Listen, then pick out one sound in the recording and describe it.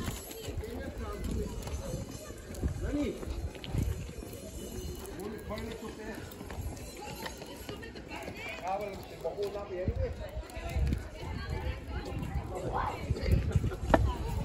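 Pushchair wheels rattle over paving stones.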